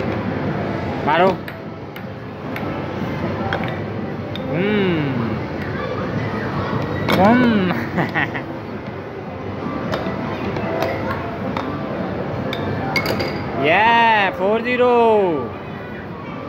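An arcade game table plays electronic sliding tones.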